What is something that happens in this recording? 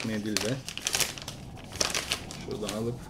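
A plastic wipes packet crinkles.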